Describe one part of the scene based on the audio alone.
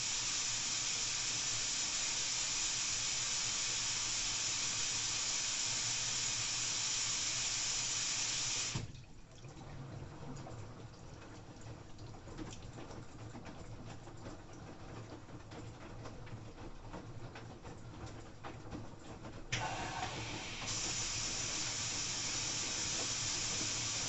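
A washing machine hums and hisses steadily.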